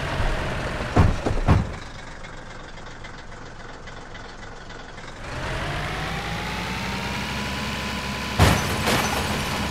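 A truck crashes and bangs against rock.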